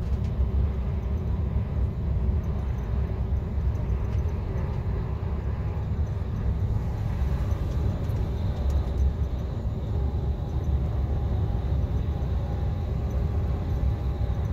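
A vehicle engine rumbles steadily from inside as it drives along.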